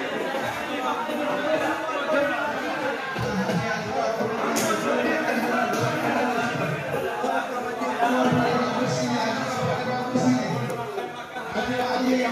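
Men and women chat in a murmur of voices in a large echoing hall.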